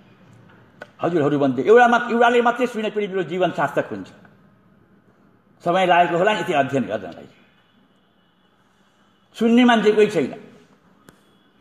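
An elderly man speaks into a microphone in short phrases, with pauses between them.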